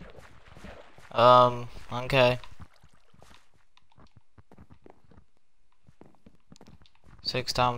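Footsteps tread softly over stone and gravel.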